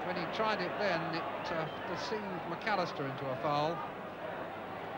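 A crowd sings and chants loudly.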